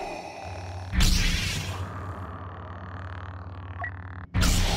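A lightsaber ignites with a sharp hiss, then hums.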